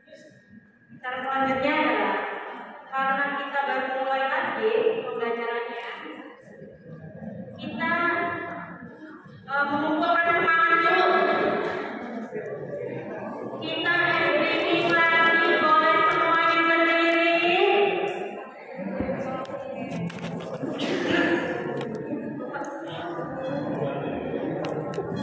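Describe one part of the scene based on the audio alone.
A woman speaks with animation through a microphone and loudspeaker in an echoing hall.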